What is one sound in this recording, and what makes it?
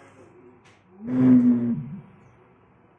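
A flame whooshes and hums briefly inside a glass bottle.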